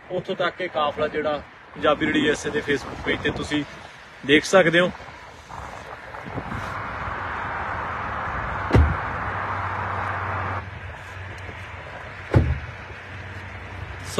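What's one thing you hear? Cars drive past on a distant highway.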